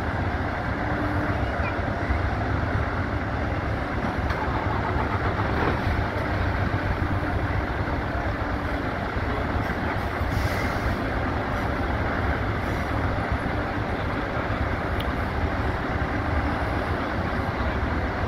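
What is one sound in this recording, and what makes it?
Heavy truck engines idle steadily in the distance.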